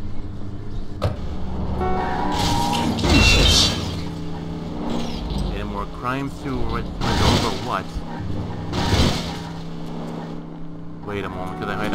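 A car engine revs and roars as a car speeds along.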